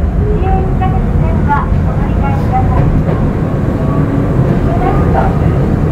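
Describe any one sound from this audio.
Train wheels squeal faintly on a curve.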